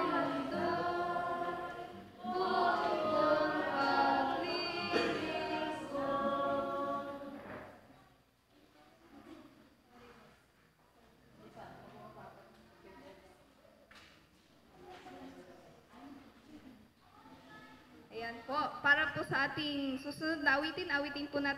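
Two young women sing together through a microphone, their voices loud at first, then soft, then loud again.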